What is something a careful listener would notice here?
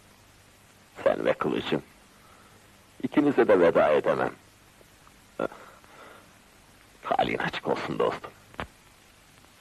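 A second man answers in a low, tense voice.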